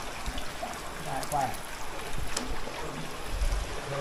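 Water splashes and sloshes as a man wades through a pool.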